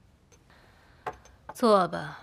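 A cup clinks on a table.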